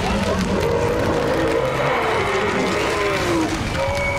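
Ice cracks and shatters with a loud crash.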